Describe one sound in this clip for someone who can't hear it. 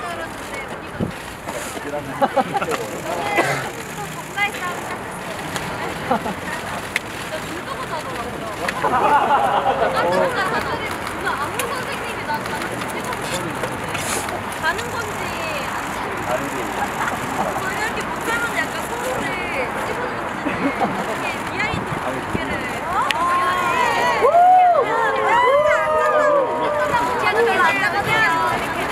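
Young women talk and laugh nearby.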